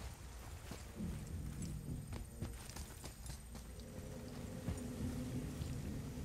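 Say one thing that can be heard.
Heavy footsteps run over hard ground.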